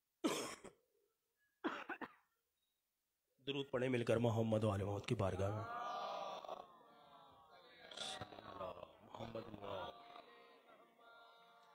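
A man speaks with feeling into a microphone, heard through a loudspeaker in an echoing hall.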